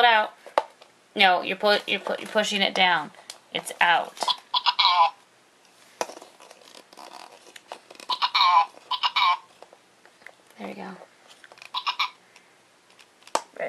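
Small plastic toy parts click and rattle as they are handled.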